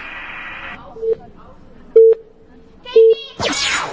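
Short electronic beeps count down about once a second.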